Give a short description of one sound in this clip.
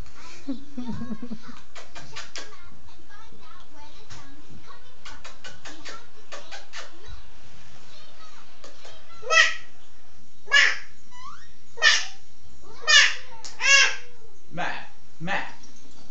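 A children's cartoon plays from a television, with voices and music.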